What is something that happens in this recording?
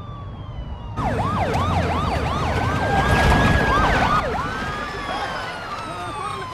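A police siren wails and yelps close by.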